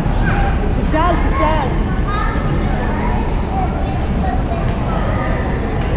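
Young men and women chat in an echoing hall.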